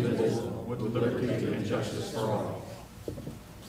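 A group of adults recite together in unison in a room.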